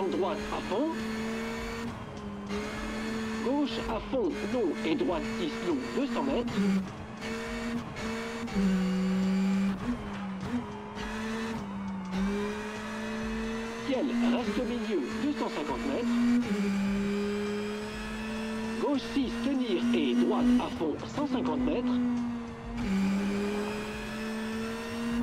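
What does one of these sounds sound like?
A car engine hums steadily and shifts pitch as it changes gear.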